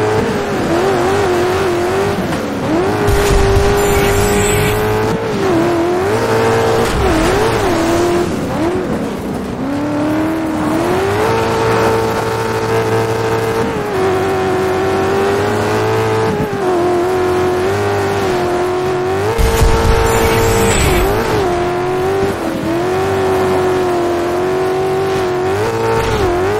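Tyres crunch and skid over loose dirt.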